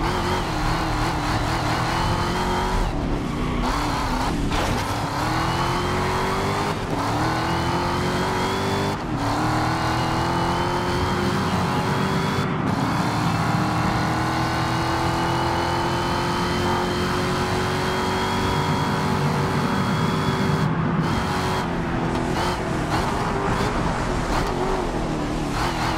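A race car engine roars and rises in pitch as it shifts through the gears.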